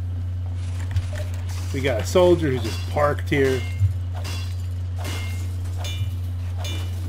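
A metal wrench clangs against a machine.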